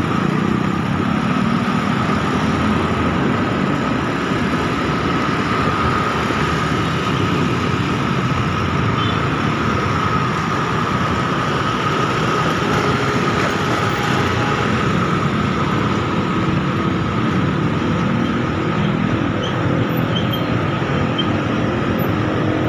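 Motorcycle engines hum steadily nearby.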